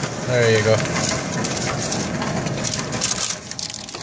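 Paper rustles as a ticket is pulled from a machine slot.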